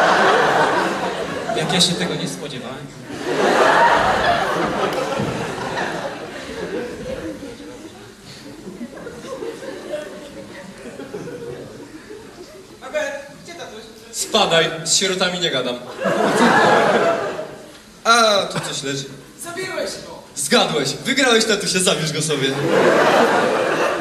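A second young man answers in a raised voice.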